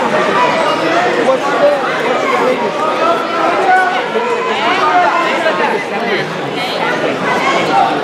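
A crowd of spectators talks and shouts in an echoing hall.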